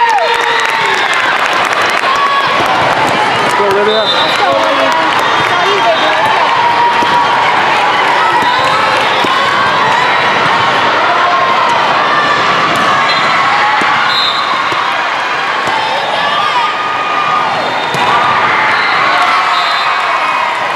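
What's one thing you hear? Many voices of a crowd chatter and shout, echoing in a large hall.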